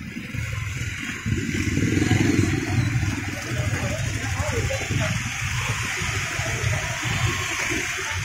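Motorbike engines hum and putter steadily as they ride past at close range.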